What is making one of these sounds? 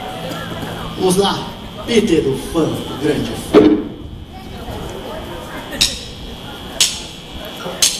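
Drums are struck with sharp hits and cymbal crashes.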